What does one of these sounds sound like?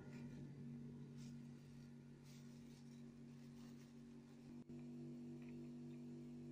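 Paper tissue rustles in a hand.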